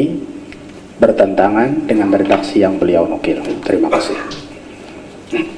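A man sings a melodic chant into a microphone, close and slightly echoing.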